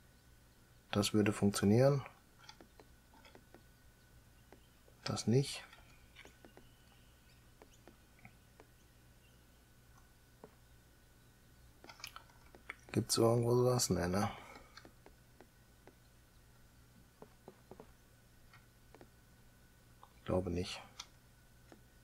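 A middle-aged man speaks calmly in short bursts through a headset microphone.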